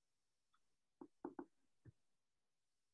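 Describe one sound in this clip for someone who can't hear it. A paintbrush taps against a paint palette.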